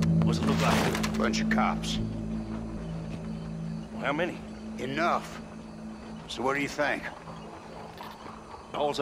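A man speaks in a low, gruff voice nearby.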